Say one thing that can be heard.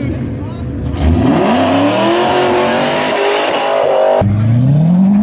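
A sports car engine revs hard and roars as it accelerates away.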